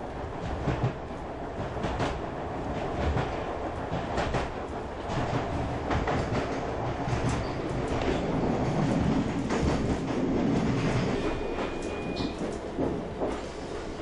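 A train rattles and clatters along the tracks, heard from inside a carriage.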